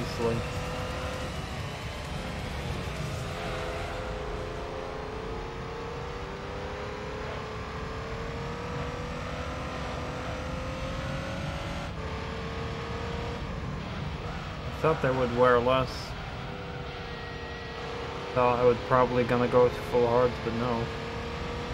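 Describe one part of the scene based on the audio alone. A racing car engine hums steadily, rising and falling in pitch as it accelerates.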